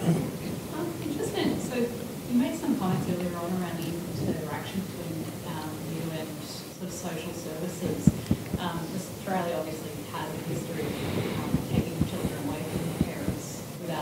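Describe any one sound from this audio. A woman speaks steadily through a microphone in a large hall.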